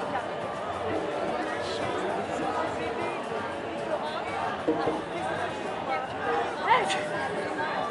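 A crowd of men and women chatters loudly outdoors.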